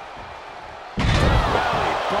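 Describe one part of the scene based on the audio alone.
A body slams onto a ring mat with a heavy thud.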